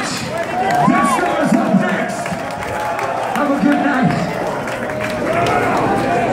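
A man sings and shouts into a microphone over loudspeakers.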